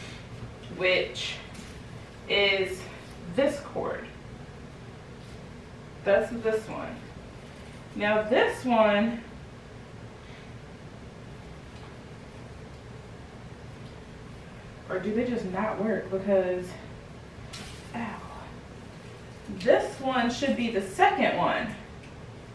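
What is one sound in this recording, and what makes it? A young woman talks calmly in short bursts, close by.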